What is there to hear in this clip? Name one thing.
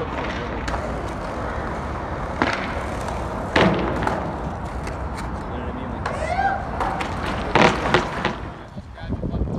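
Skateboard wheels roll and rumble across concrete.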